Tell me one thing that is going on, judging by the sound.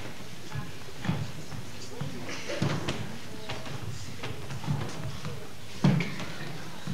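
A wooden chest thumps down onto a stage floor.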